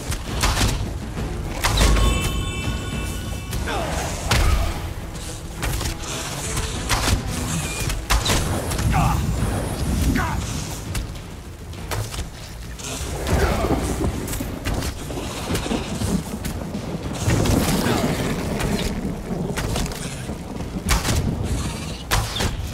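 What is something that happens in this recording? Bowstrings twang as arrows are loosed again and again.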